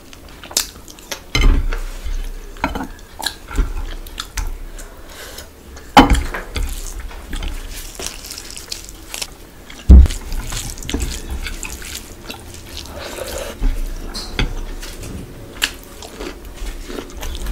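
Fingers squish through rice and curry on a plate.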